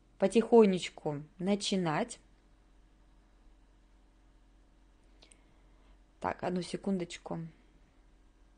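A young woman speaks calmly into a microphone, close by, in short bursts with pauses.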